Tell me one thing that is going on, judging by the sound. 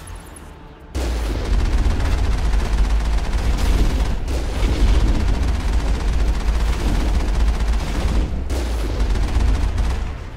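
A heavy gun fires rapid, booming shots in a loud barrage.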